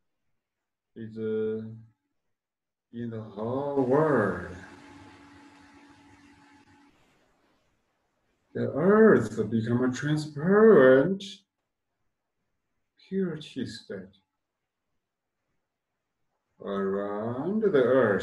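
A man speaks calmly and close by, pausing between phrases.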